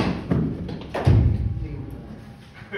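A cricket bat strikes a ball with a sharp crack that rings briefly in an echoing indoor hall.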